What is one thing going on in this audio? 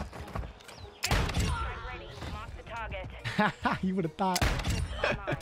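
A gun fires sharp, loud shots.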